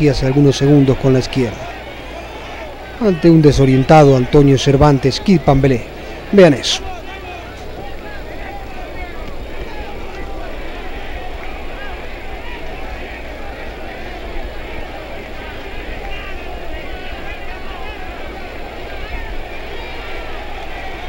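A large crowd murmurs and roars in a big arena.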